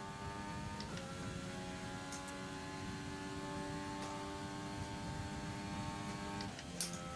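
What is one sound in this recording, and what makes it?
A racing car engine screams at a steady high pitch down a straight.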